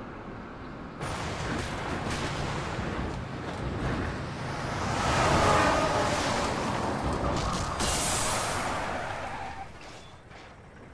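A huge machine crashes and roars.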